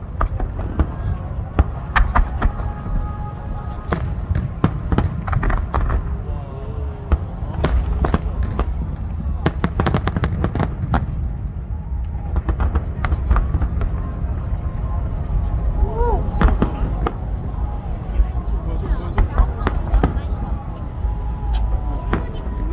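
Fireworks burst with loud booms and bangs.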